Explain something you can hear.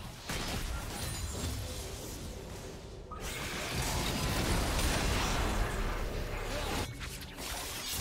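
Video game sound effects of spells and blows clash and burst.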